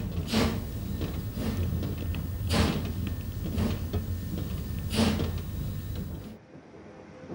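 A steam locomotive puffs in heavy, regular beats in the distance.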